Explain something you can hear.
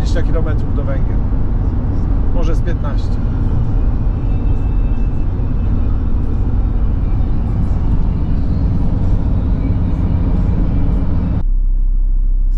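A car engine and road noise rumble steadily from inside the car.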